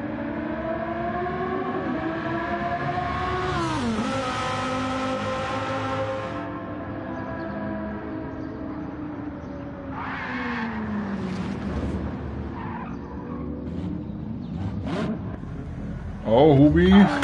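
A racing car engine roars at high revs and drops in pitch as the car shifts and brakes.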